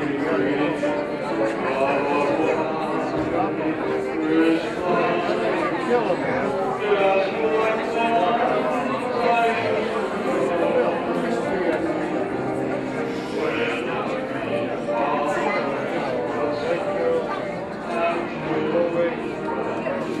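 A middle-aged man speaks with animation through a microphone and loudspeakers in a room that echoes a little.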